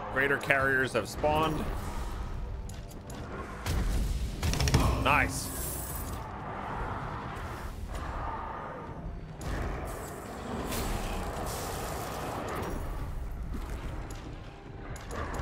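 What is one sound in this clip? Gunfire and energy blasts crackle and boom.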